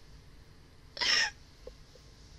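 A young woman laughs briefly into a close microphone.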